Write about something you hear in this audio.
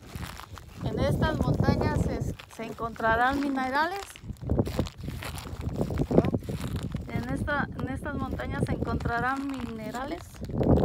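A young child talks in a high voice nearby.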